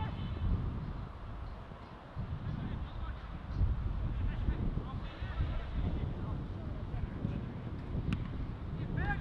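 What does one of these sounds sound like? Wind rumbles across an open field outdoors.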